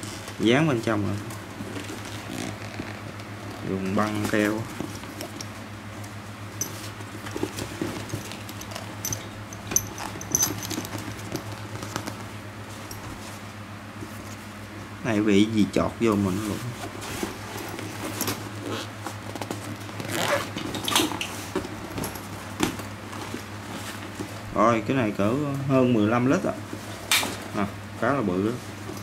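A shiny plastic bag crinkles and rustles as hands handle it.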